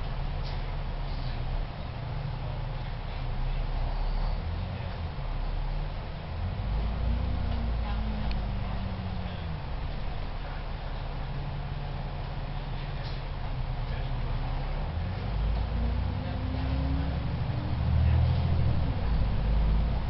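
A bus engine rumbles and whines as the bus pulls away and speeds up.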